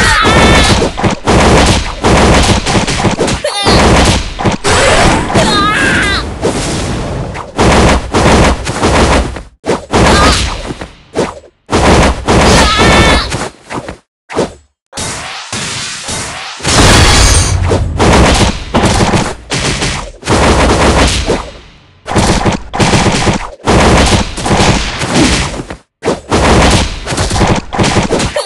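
Game sound effects of attacks and hits ring out rapidly.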